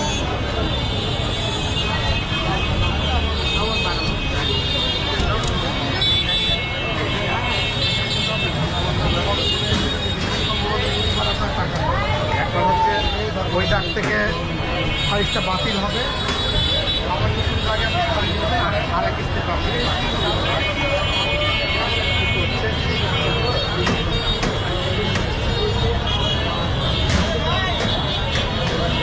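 Vehicle horns honk now and then.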